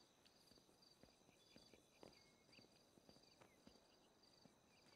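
Footsteps tap on a hard paved floor.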